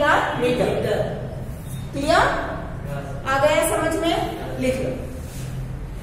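A young woman speaks calmly nearby, as if teaching.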